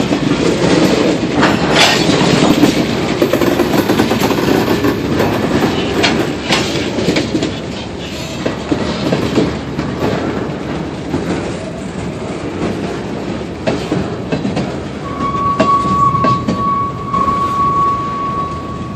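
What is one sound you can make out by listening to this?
Freight car wheels clack over rail joints.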